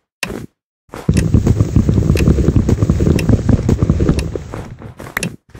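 An axe chops repeatedly at wood in quick knocks.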